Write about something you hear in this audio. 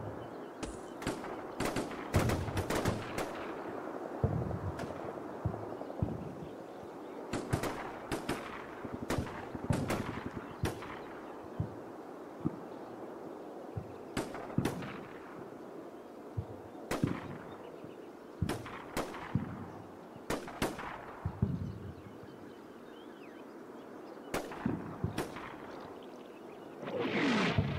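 Explosions boom and rumble in the distance, again and again.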